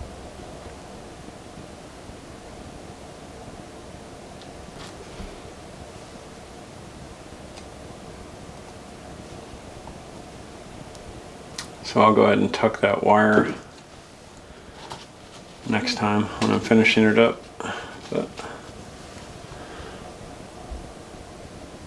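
Small plastic parts click and rattle softly as they are handled.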